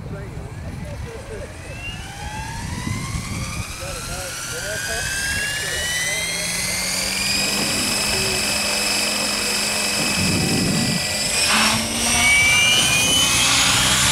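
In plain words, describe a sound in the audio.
A small model helicopter's motor whines, rising steadily in pitch as its rotor spins up.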